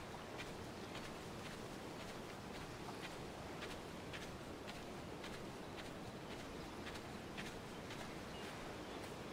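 Waves wash gently against a shore.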